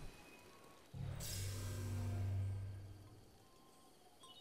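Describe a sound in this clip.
A deep, humming chime swells and then fades.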